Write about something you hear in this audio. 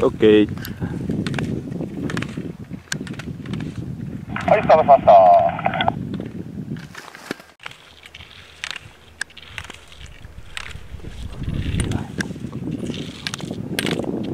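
Skis scrape and hiss across hard snow in quick turns.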